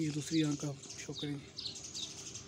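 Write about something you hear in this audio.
A pigeon coos softly close by.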